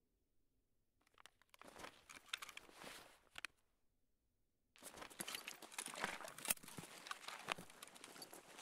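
Footsteps crunch on a hard gritty floor.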